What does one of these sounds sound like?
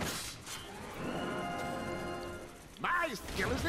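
A bright chiming jingle plays.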